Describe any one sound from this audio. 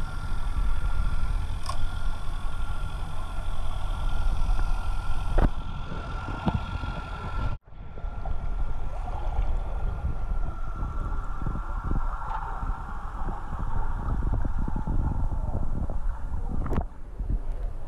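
Muffled underwater rumbling and bubbling fills the sound.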